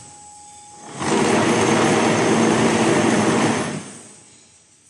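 A block-making machine vibrates with a loud, rattling roar, then stops.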